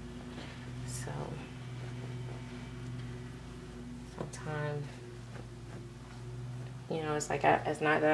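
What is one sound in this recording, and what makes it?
Hands softly rustle against a baby's clothing.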